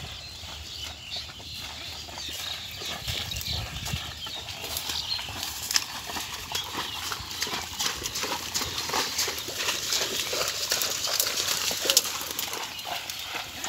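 Water buffalo hooves squelch through mud.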